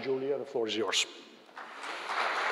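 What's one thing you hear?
A man speaks briefly into a microphone.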